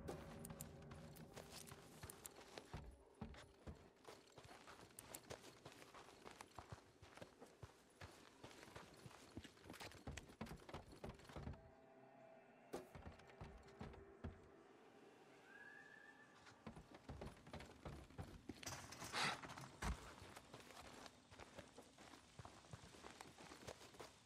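Footsteps crunch on gravel and dry leaves.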